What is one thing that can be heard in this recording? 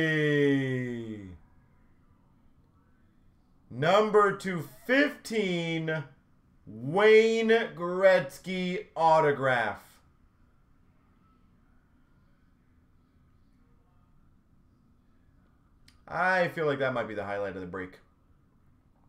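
A man talks calmly close by, in short bursts.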